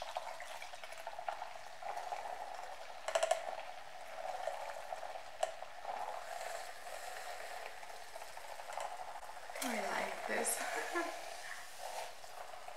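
A small electric motor whirs steadily close by.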